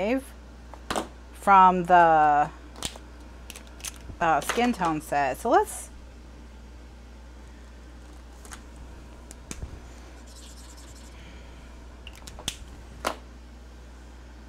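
A marker cap clicks off and on.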